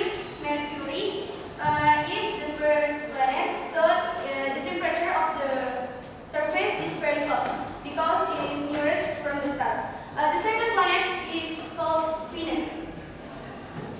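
A young woman speaks calmly to a room.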